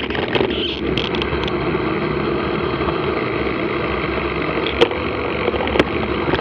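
Tyres roll and crunch over a gravel track.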